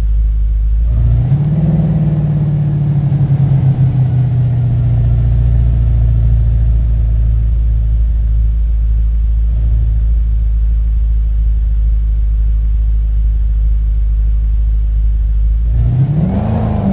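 A car engine revs up and settles into a steady drone as the car drives off.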